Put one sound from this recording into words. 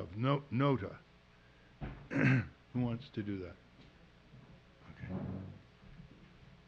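An elderly man speaks calmly through a microphone.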